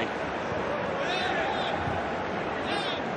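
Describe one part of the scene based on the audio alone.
Footballers shout to each other across a large, empty stadium.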